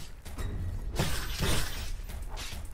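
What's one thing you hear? A loud magic blast booms and crackles.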